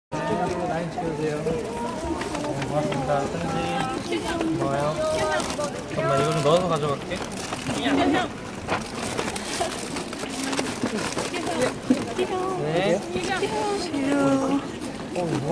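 Several young women chatter excitedly close by.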